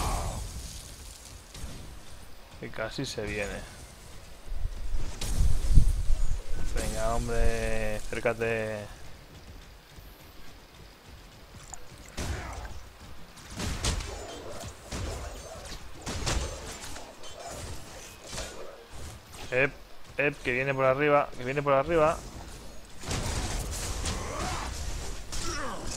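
Weapons fire in quick, sharp bursts.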